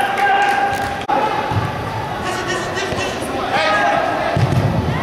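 Men shout to each other across a large echoing hall.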